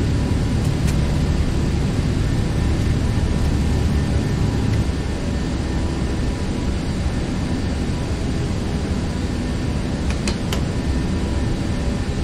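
Jet engines roar steadily at full power.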